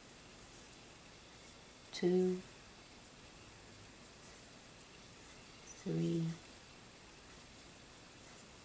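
Yarn rustles softly as a crochet hook pulls it through stitches.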